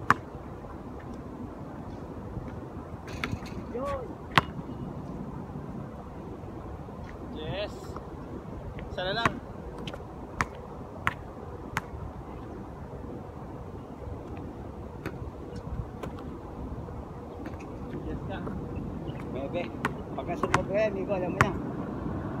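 A basketball bounces sharply on an outdoor court.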